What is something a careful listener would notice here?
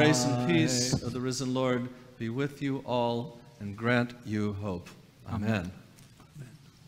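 A man chants in a sung voice, echoing in a large hall.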